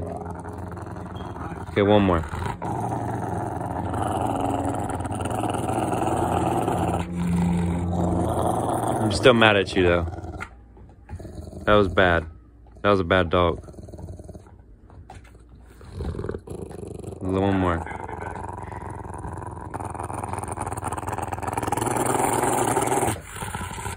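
A large dog growls and grumbles up close.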